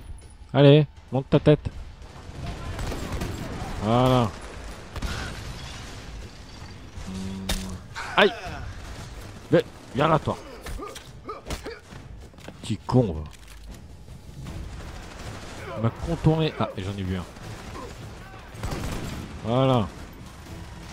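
Gunshots crack out in bursts.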